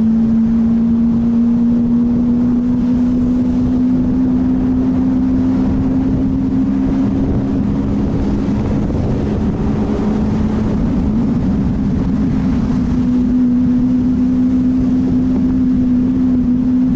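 A sports car engine hums loudly and steadily at low speed.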